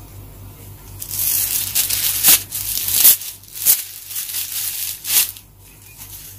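Plastic wrapping rustles and crinkles as it is torn open.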